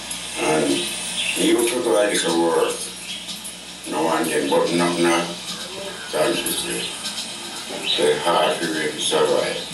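An elderly man speaks calmly through a television speaker.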